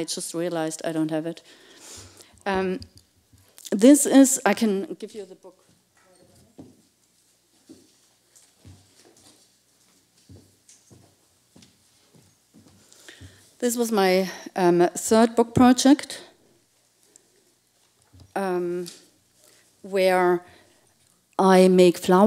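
A woman speaks with animation into a microphone, in a large echoing hall.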